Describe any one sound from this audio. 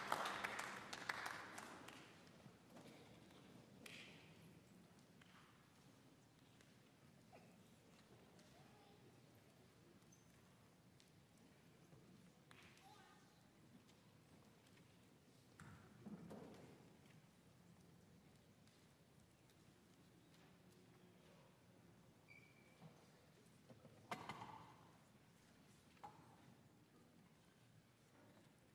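An audience murmurs and shifts quietly in a large hall.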